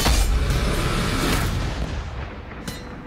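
Game sound effects rumble and crash.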